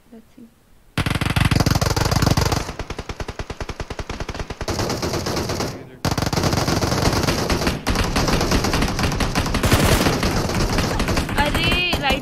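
Rapid gunfire rattles loudly in a video game.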